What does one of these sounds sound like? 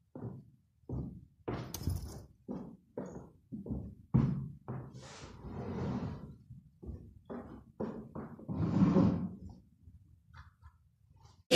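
A rug is shaken and flaps in sharp bursts.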